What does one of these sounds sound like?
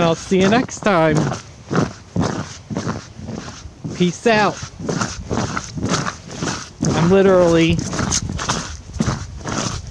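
Boots crunch and scrape across icy, frozen ground.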